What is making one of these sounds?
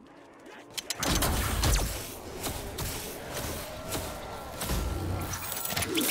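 Guns fire in loud bursts with explosions.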